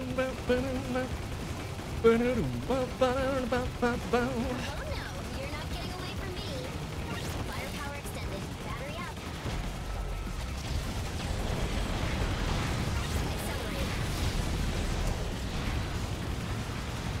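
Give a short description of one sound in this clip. Electronic gunfire and explosions crackle constantly from a video game.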